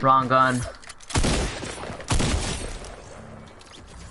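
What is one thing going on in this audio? Gunshots crack.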